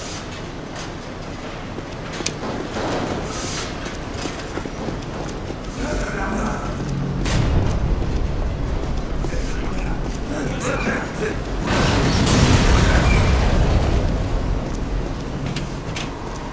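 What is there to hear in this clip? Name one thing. Footsteps clank on hard floors.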